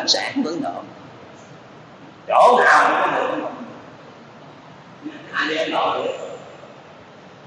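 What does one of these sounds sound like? An elderly man speaks calmly into a microphone in short phrases.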